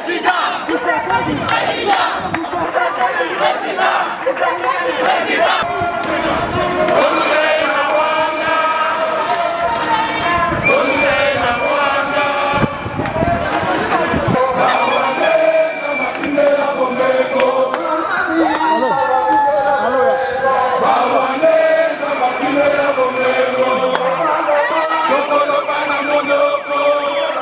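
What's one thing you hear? A crowd of men and women chants and sings loudly outdoors.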